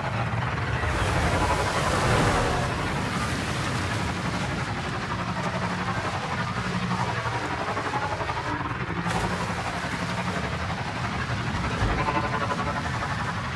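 A motorbike engine hums steadily.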